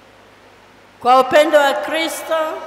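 A woman speaks loudly through a microphone in an echoing hall.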